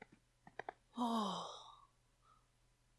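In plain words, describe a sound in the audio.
A young man exclaims in surprise.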